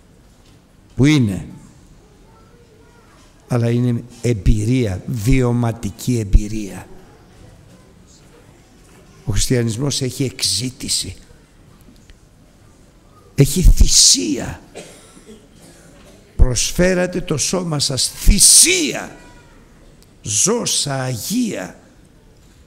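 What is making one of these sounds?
A middle-aged man speaks with feeling through a microphone, in bursts with pauses, in a large echoing room.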